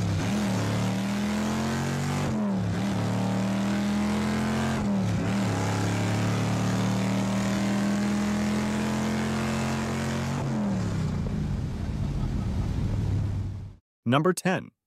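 A car engine roars loudly from inside the car, with its pitch dropping briefly as the gears shift.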